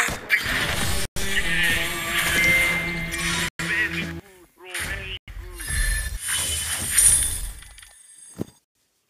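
A triumphant victory jingle plays.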